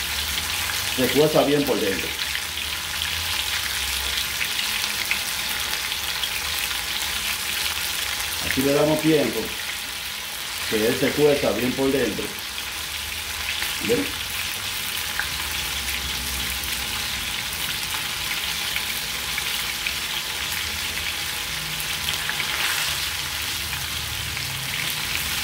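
A metal spoon stirs and scrapes against a pot.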